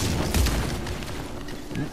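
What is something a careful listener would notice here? A gun fires with a loud bang.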